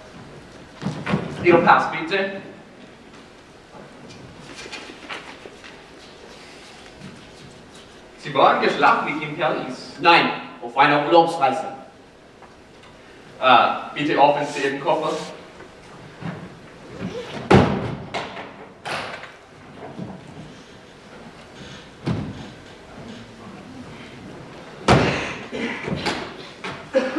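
Young men speak on a stage in a large hall, heard from far back in the audience.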